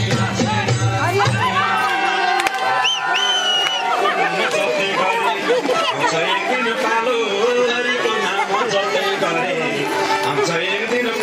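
A crowd of men and women chatter and shout loudly close by.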